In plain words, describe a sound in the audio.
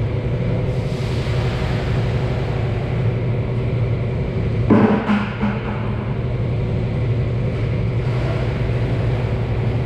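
Liquid pours and splashes from a bucket.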